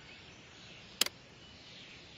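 A single sharp click sounds.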